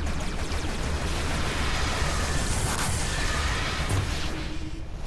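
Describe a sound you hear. A loud explosion roars and hisses.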